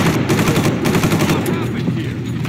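A rifle fires a rapid burst of loud gunshots.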